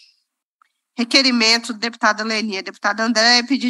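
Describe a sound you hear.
A woman speaks calmly into a microphone, close and clear.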